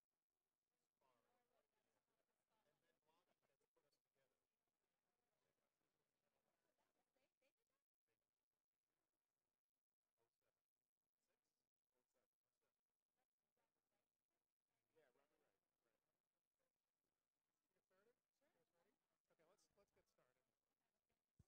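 A man and a woman chat quietly at a distance.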